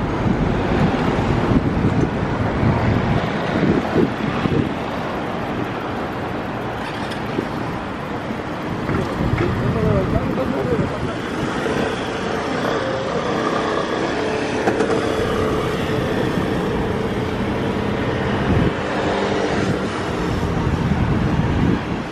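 City traffic hums steadily nearby.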